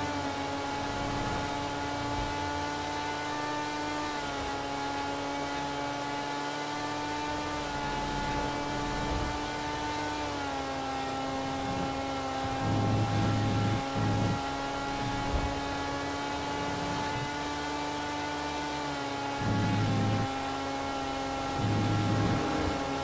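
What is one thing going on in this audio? A sports car engine drones steadily at high speed, its pitch dipping slightly now and then.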